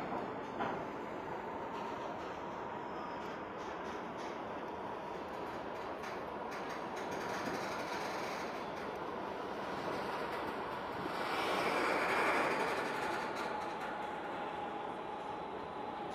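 An eight-wheeled armoured vehicle drives past on concrete.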